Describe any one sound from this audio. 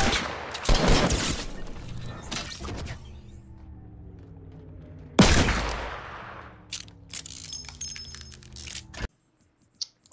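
Loud gunshots and blasts ring out in quick bursts.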